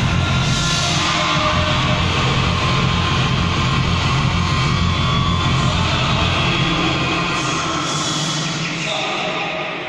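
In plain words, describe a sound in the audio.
Music with heavy bass plays loudly over loudspeakers in a large echoing hall.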